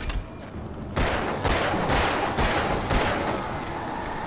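Gunshots ring out several times in quick succession, each with a ringing echo.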